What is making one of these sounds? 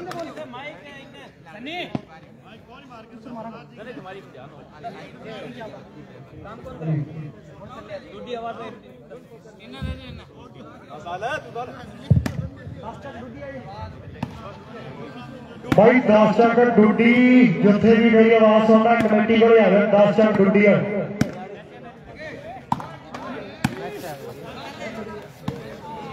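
A crowd of men chatter and call out outdoors.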